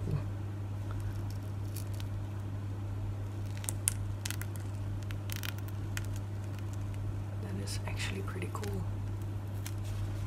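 A hard plastic mould clicks and taps softly as it is handled.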